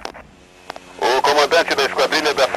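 A man speaks over a radio.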